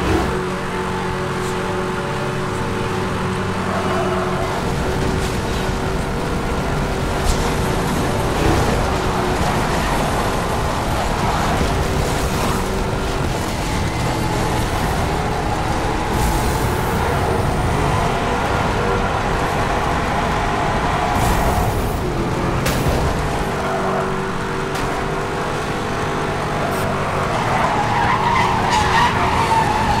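A sports car engine roars at high speed.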